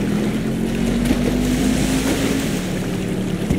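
Water splashes as something drops into a pool.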